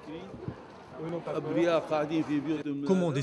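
An elderly man speaks calmly close by, outdoors.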